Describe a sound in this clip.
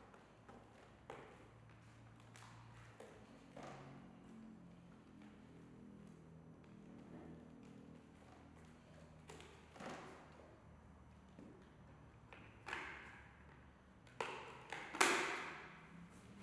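A helmet knocks and rustles as it is handled.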